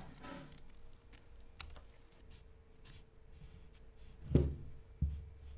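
A felt-tip marker scratches lightly on paper.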